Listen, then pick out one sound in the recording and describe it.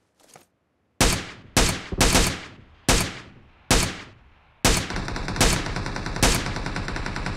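A rifle fires rapid, loud shots in quick bursts.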